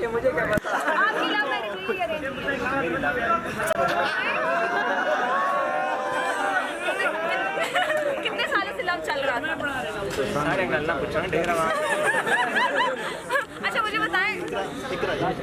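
A crowd of people chatters close by.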